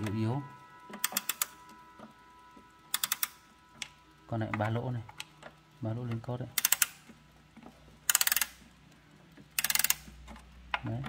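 A clock key is wound with quick ratcheting clicks.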